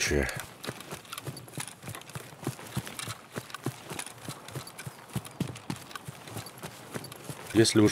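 Footsteps swish steadily through tall grass.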